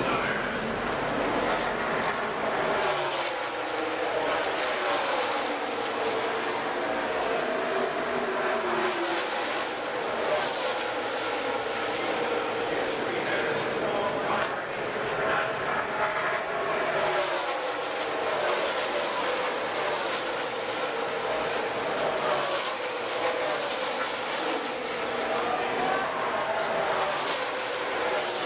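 Race car engines roar and whine, rising and falling in pitch as cars speed past.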